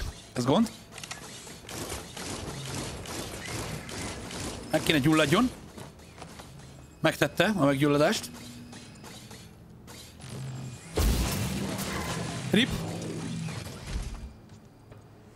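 Game gunfire and blasts crackle and boom.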